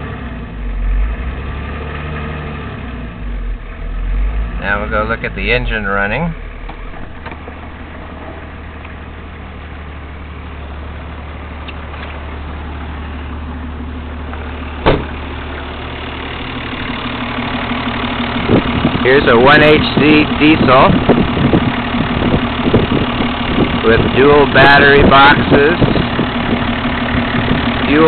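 A diesel engine idles with a steady clatter, growing louder up close.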